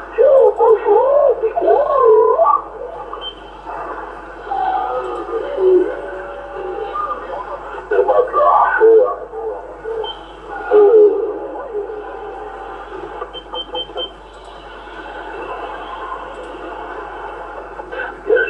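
A radio receiver hisses with crackling static.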